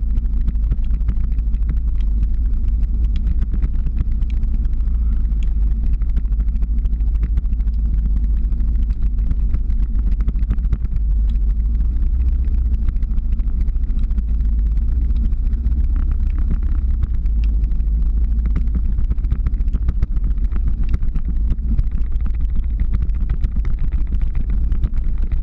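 Small wheels roll and rumble on asphalt.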